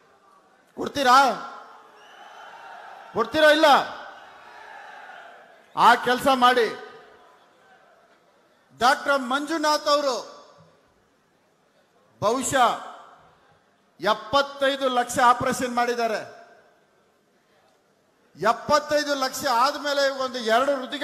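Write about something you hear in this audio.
A man gives a speech into a microphone, loud and forceful in short bursts, heard through loudspeakers echoing outdoors.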